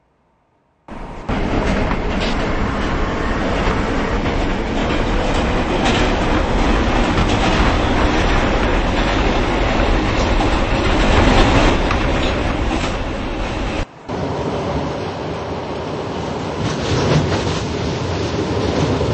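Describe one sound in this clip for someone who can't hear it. A subway train roars loudly through a tunnel.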